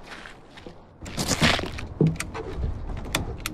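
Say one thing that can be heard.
A key turns in a lock with a metallic click.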